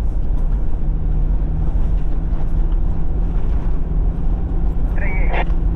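Tyres crunch over snow.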